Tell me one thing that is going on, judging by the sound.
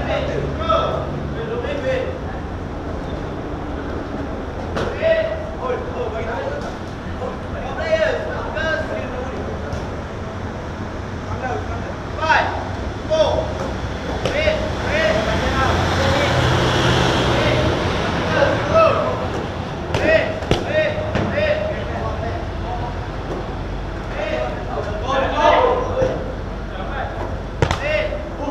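Children shout and call out in a large echoing space.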